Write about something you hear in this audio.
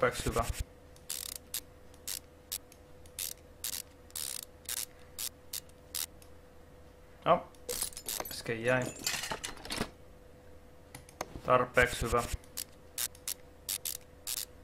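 Short, sharp clicks ring out as bolts are undone one after another.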